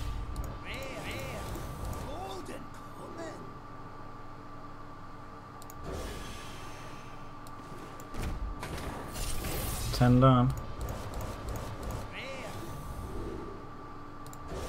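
Cards flip over with bright sparkling chimes.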